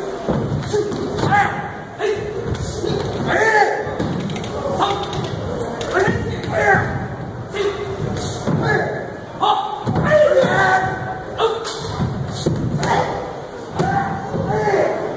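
Men shout sharply as they perform martial arts moves.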